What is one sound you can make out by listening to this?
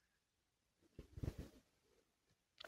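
A cup clinks softly on a table.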